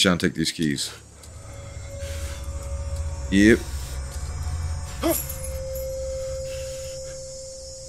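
Handcuff chains rattle and clink.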